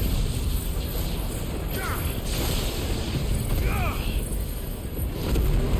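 Electric bolts crackle and zap loudly.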